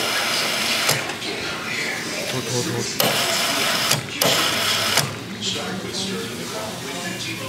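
Fizzy soda bubbles and crackles in a cup.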